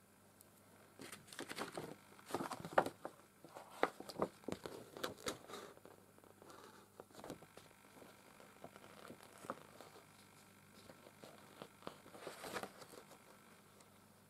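Fingers rustle and tap on felt and paper close by.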